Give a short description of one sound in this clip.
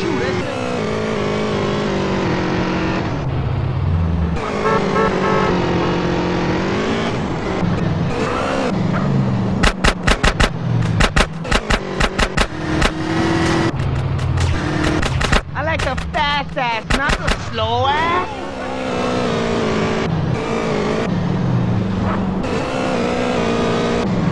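A motorbike engine roars steadily.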